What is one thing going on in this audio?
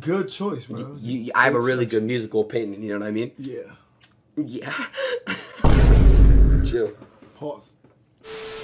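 Young men talk and laugh with animation close by.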